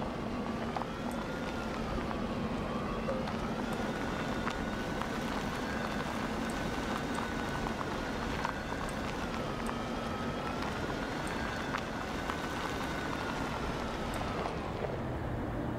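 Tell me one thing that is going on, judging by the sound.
A small vehicle's motor hums steadily, rising and falling in pitch as it drives.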